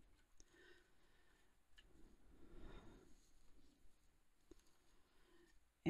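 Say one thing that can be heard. Paper pages rustle and crinkle as they are handled.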